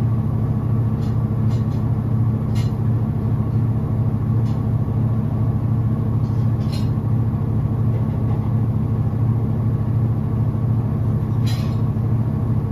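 Wet clothes slosh and thump inside a washing machine drum.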